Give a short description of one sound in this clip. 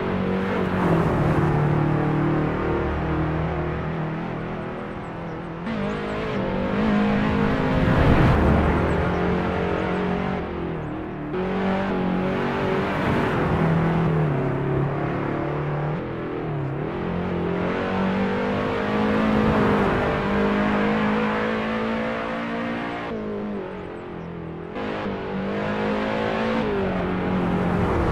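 A racing car engine revs hard and roars, rising and falling in pitch as the gears change.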